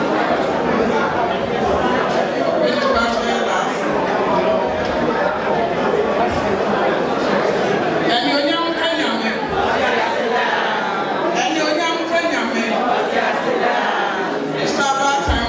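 A choir of women sings together in a large hall.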